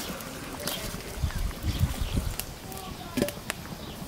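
A lid clanks onto a pot.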